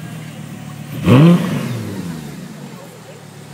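A sports car engine revs sharply once and then settles.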